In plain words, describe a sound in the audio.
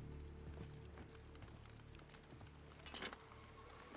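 A man rummages through metal parts under a car hood.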